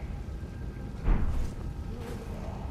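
A magical whoosh swells and rings out.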